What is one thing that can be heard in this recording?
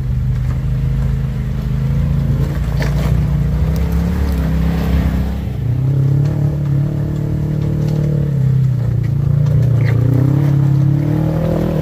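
An off-road vehicle's engine revs and rumbles close by.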